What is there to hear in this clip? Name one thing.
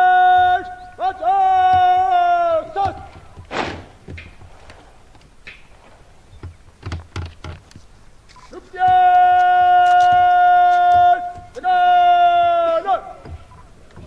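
A man shouts long, drawn-out parade commands outdoors.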